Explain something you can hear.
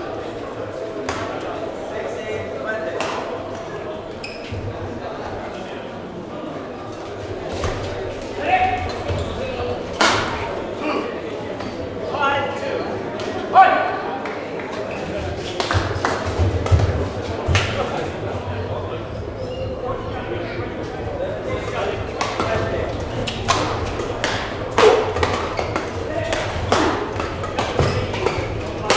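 Shuttlecocks are struck with rackets in sharp, repeated pocks in a large echoing hall.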